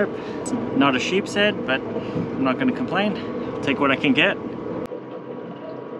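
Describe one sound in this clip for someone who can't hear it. A man talks calmly and close to the microphone.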